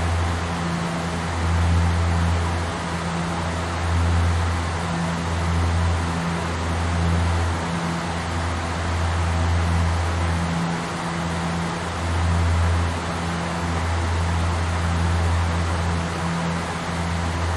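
Aircraft engines drone steadily with a low, pulsing hum.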